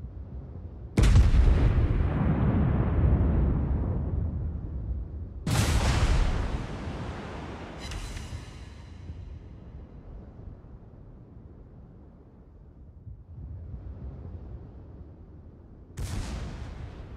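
Heavy guns fire with deep, booming blasts that rumble away.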